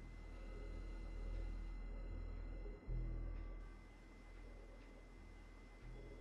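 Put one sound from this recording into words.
Bed sheets rustle as a man shifts on a bed.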